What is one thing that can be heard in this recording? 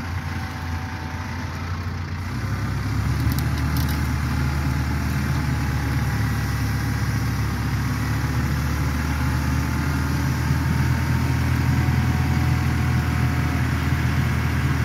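A compact diesel tractor engine runs.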